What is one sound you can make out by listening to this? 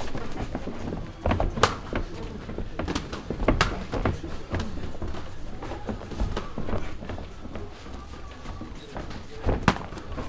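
Feet shuffle and squeak on a mat.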